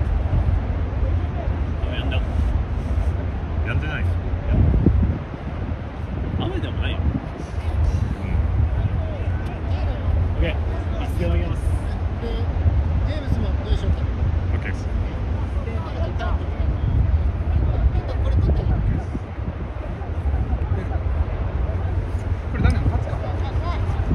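Wind rumbles across an open outdoor field.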